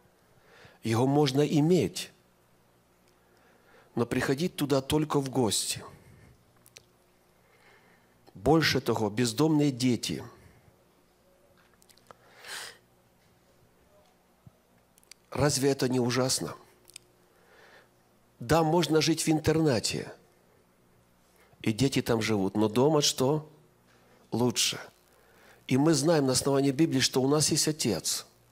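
An elderly man speaks calmly into a microphone in bursts, with pauses.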